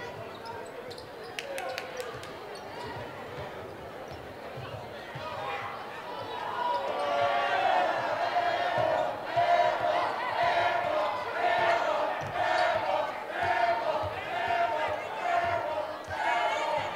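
A large crowd murmurs in an echoing gym.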